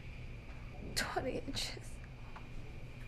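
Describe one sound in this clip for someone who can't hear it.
A young woman gasps and moans softly.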